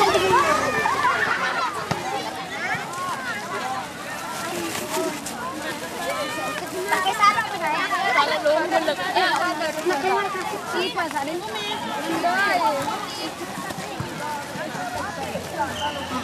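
Young girls chatter and giggle close by.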